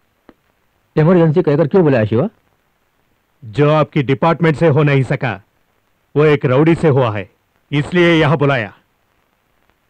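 A middle-aged man speaks sternly nearby.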